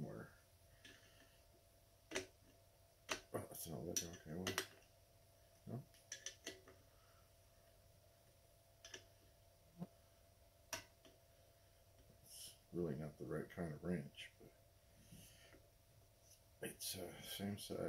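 A small wrench clicks and scrapes against a metal bolt.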